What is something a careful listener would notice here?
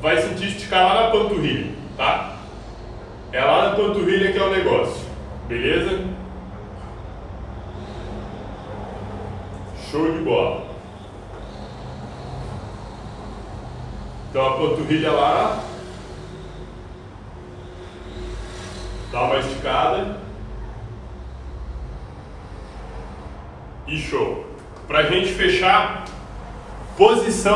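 A young man talks calmly close by, in short bursts with pauses.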